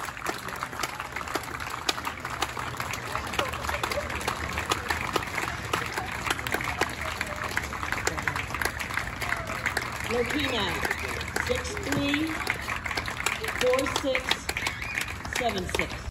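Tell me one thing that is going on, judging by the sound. A crowd of spectators murmurs and chatters outdoors.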